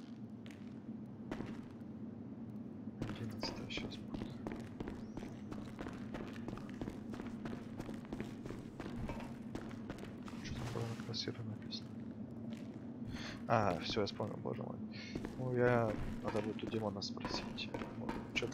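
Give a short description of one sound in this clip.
Footsteps crunch on gravel in an echoing tunnel.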